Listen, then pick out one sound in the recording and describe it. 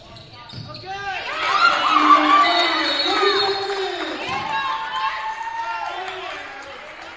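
A crowd of spectators cheers loudly in an echoing gym.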